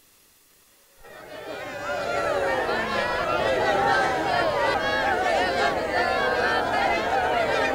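A crowd of women wail and cry together.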